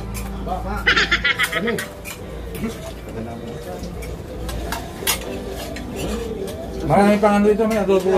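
Dishes and utensils clatter.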